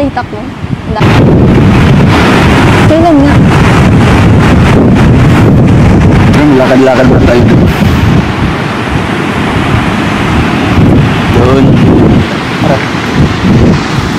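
Wind roars and buffets the microphone outdoors.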